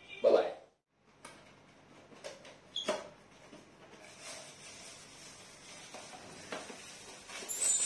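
A cardboard box rustles and scrapes as it is opened.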